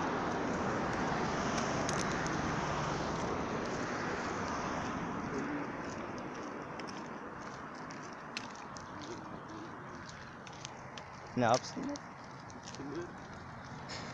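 A young man talks animatedly close to the microphone.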